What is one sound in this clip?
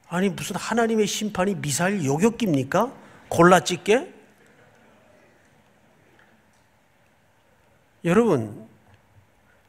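A middle-aged man speaks calmly and with emphasis into a microphone, with pauses.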